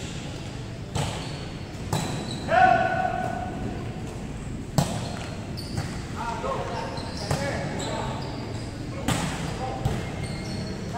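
Players' hands strike a volleyball with sharp smacks in an echoing indoor hall.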